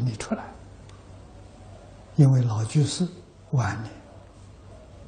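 An elderly man speaks calmly in short phrases through a clip-on microphone.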